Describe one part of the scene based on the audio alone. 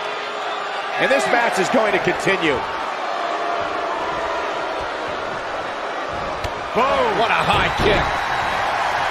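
Heavy bodies thud and slam onto a wrestling ring mat.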